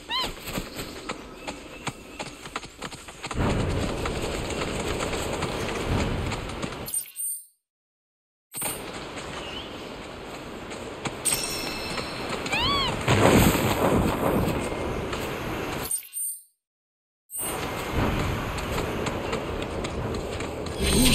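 A large bird runs with quick footsteps on grass.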